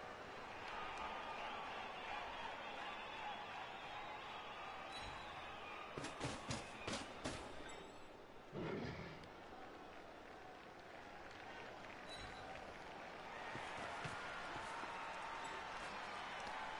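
A crowd cheers steadily.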